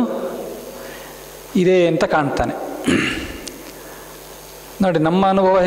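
A man speaks calmly into a microphone, with pauses, in a room that echoes a little.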